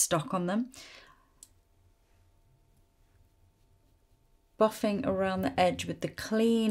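A woman speaks calmly and close to the microphone, with pauses.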